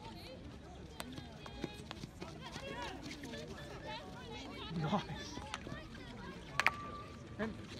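A hockey stick strikes a ball with a sharp crack.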